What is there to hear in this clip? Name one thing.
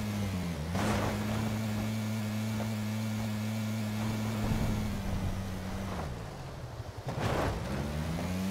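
A buggy thuds and bumps over rough ground.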